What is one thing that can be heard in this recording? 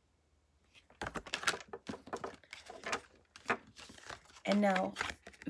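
Playing cards are shuffled and slapped together by hand.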